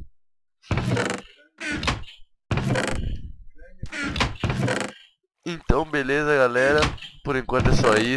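A wooden chest lid creaks open.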